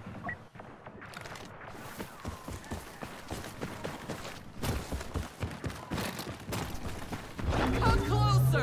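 Footsteps crunch on a dirt path.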